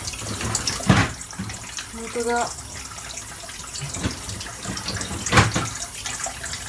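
Thumps and knocks sound close by.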